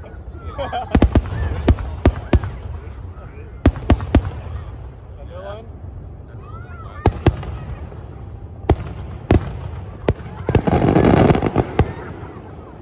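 Fireworks burst with loud bangs and crackles outdoors.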